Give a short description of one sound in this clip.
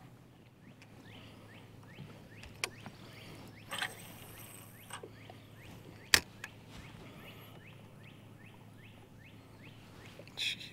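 A fishing reel ticks softly as line is wound in.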